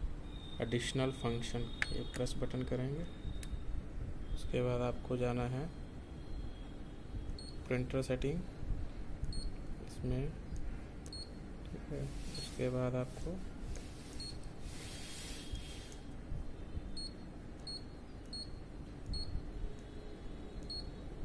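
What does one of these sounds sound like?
A control panel gives short electronic beeps as buttons are pressed.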